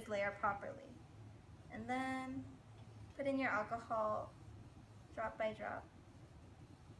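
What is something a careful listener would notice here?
A young woman speaks calmly, close by, in short phrases.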